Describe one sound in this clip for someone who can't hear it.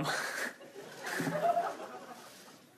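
A man laughs softly.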